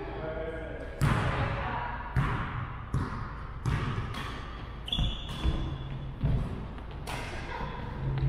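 Badminton rackets strike a shuttlecock back and forth in a large echoing gym.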